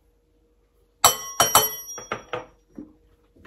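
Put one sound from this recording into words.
A pepper mill grinds with sharp crackles.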